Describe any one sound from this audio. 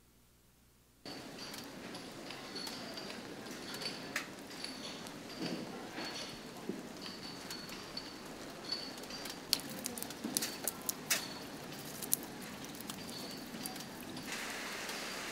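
Steady rain falls and splashes on wet pavement.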